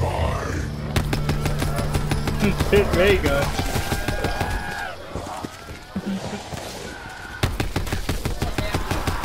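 An automatic gun fires rapid bursts of shots.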